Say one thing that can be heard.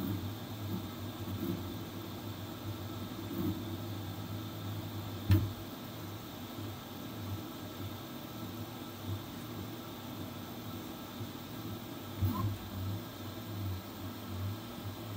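A 3D printer's motors whine in short changing tones as the print head changes direction.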